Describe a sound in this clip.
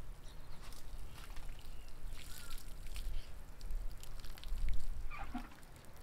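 Water pours from a watering can and splashes onto soil.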